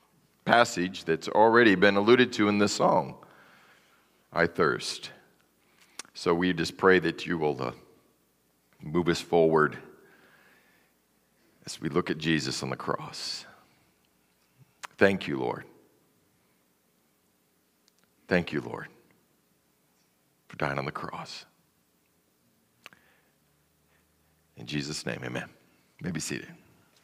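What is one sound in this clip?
A man speaks calmly through a microphone in a large room, pausing between phrases.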